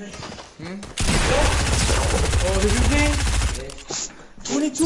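Gunshots fire rapidly in quick bursts.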